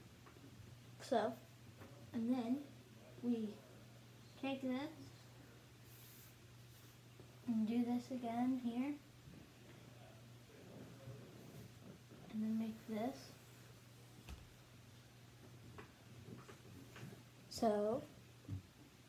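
A young boy speaks calmly close by, in short bursts.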